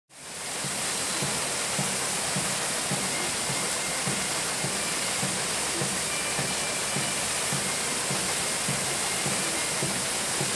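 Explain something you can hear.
A paddle wheel churns and splashes water steadily.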